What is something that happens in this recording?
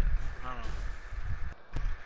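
A pickaxe strikes a wall with a dull knock.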